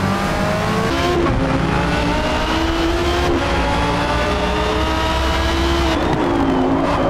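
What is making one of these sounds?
A racing car engine drops in pitch with each gear shift.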